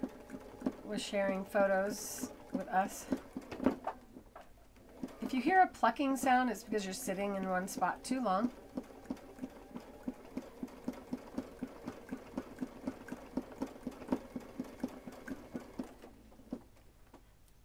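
A sewing machine stitches with a fast, steady ticking.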